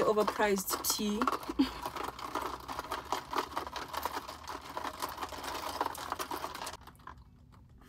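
A straw stirs and rattles ice in a plastic cup.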